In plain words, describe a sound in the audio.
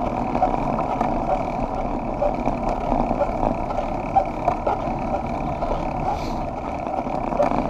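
Bicycle tyres hum on a paved road.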